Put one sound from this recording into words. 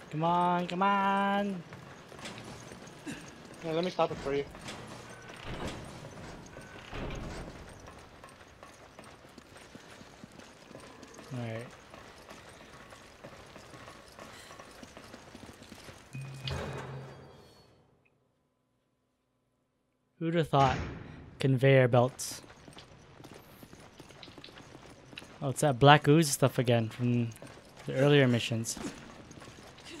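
Heavy footsteps clank on metal floors and stairs.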